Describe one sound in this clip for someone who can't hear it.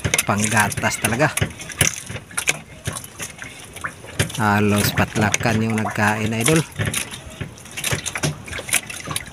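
Water laps against the side of a boat.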